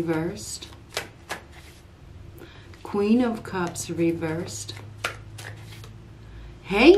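A middle-aged woman speaks calmly and thoughtfully close to a microphone.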